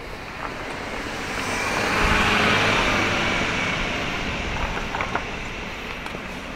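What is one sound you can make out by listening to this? A car drives slowly past, its engine and tyres rising and then fading away.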